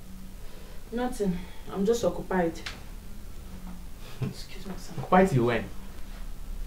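A woman speaks calmly in short phrases nearby.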